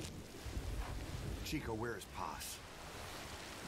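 A man speaks quietly in a low voice close by.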